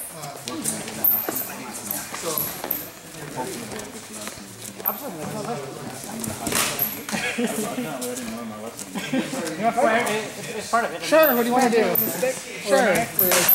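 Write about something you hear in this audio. Practice swords clack together.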